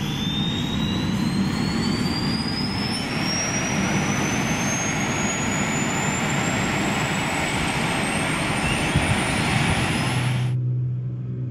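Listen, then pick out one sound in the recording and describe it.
A helicopter turbine whines, rising steadily in pitch as it spools up.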